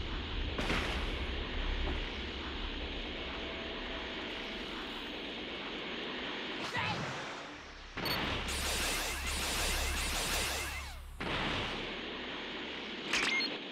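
A rushing energy whoosh roars steadily as a character flies through the air.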